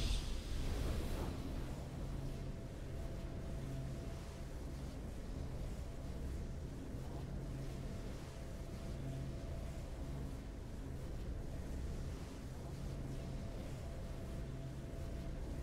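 A triumphant game fanfare plays and settles into steady music.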